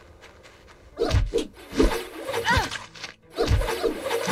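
Sharp hits and impact bursts strike in a quick fight.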